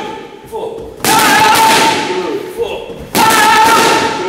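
Boxing gloves smack against punch mitts.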